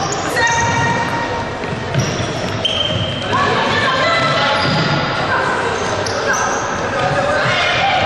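A ball thumps as players kick it.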